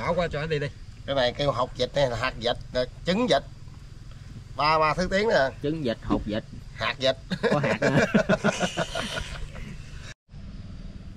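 A second middle-aged man answers with animation, close by.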